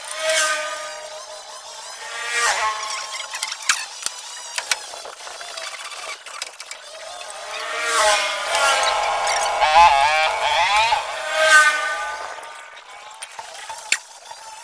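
A hand saw scrapes and screeches through metal in repeated strokes.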